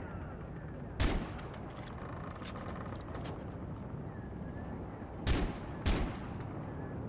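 A pistol fires sharp, loud shots.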